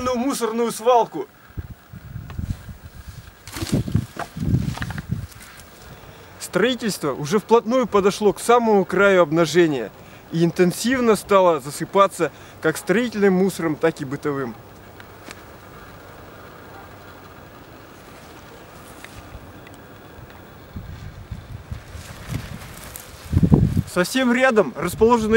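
A middle-aged man talks calmly and closely outdoors.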